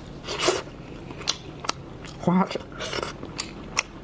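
A young woman slurps and chews wetly close to a microphone.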